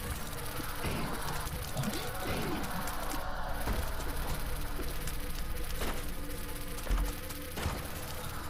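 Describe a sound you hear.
Video game shots and splashes pop rapidly.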